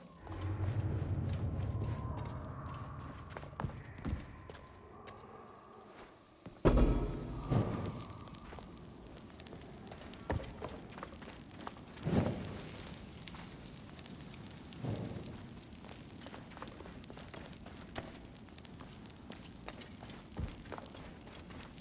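Footsteps scuff across a dusty stone floor.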